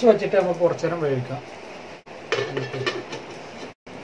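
A metal lid is set down on a pan.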